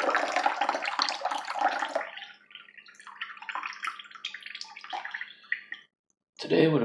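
A drink pours from a can into a mug with a splashing trickle.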